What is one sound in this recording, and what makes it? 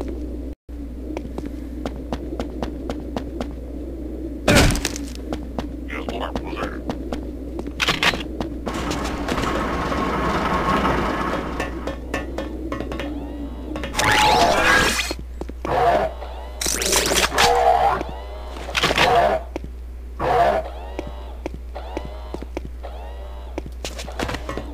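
Footsteps tap quickly on metal floors.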